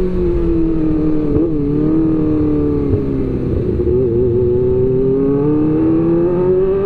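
A motorcycle engine hums steadily at speed, its pitch rising and falling slightly.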